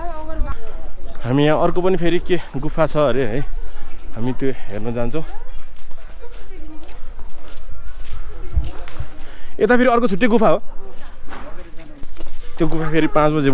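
Footsteps walk steadily along a paved path outdoors.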